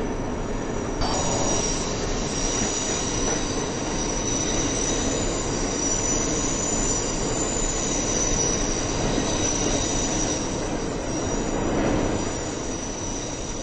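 A train's motor whines with a high steady hum.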